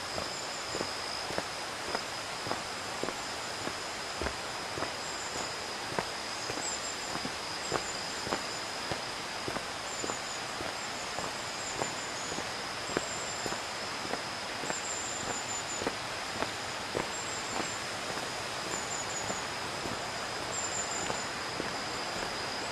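Footsteps tread at a steady walking pace on a stone path outdoors.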